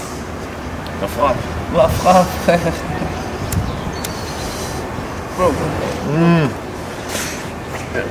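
Two men talk casually close by.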